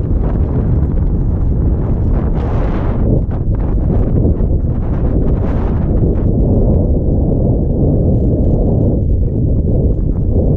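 Strong wind rumbles and buffets steadily outdoors.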